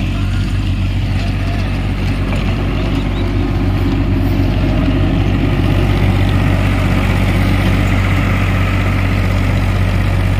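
A rotary tiller churns through soil with a rattling grind.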